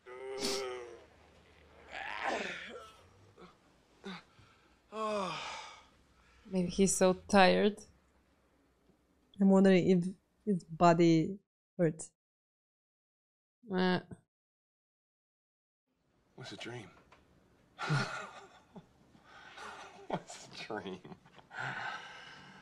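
A young woman talks calmly into a close microphone.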